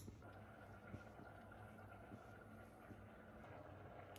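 A lemon is rolled on a hard counter.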